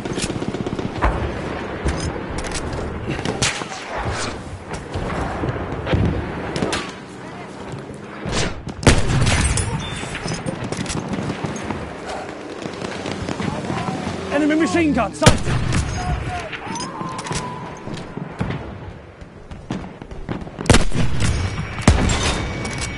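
Rifle shots crack sharply, again and again.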